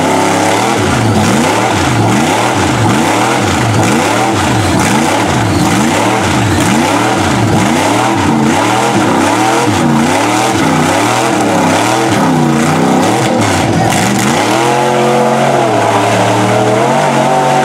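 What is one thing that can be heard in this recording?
Mud and water splash and spray from spinning tyres.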